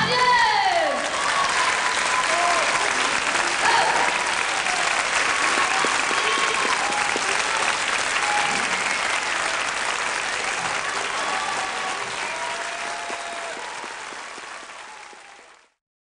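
A large audience applauds and cheers loudly in a big echoing hall, then fades away.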